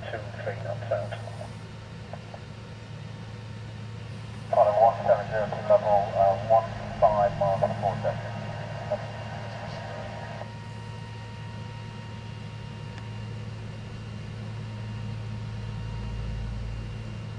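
A distant jet airliner drones steadily overhead, growing slightly louder as it approaches.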